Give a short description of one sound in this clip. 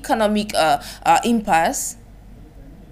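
A young woman speaks clearly into a microphone.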